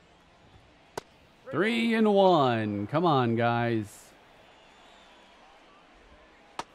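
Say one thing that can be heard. A baseball pops sharply into a catcher's mitt.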